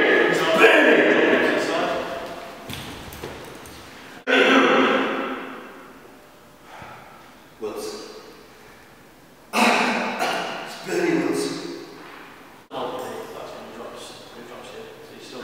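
A young man speaks with animation in a large echoing room.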